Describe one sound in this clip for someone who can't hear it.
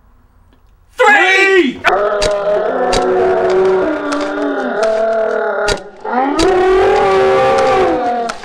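Small mouth instruments are blown, playing long wavering notes.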